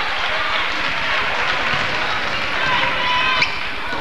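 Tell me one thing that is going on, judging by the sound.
A basketball bounces on the court as a player dribbles.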